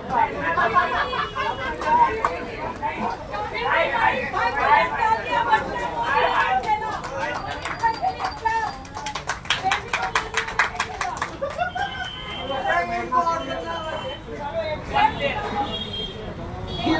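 Several men and women chatter and call out nearby with animation.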